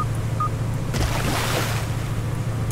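Water splashes as a buoy drops into it.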